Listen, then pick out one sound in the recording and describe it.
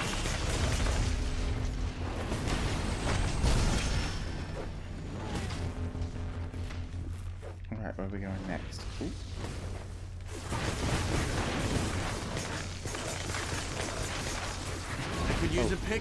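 Weapons clash and thud in a fast fight.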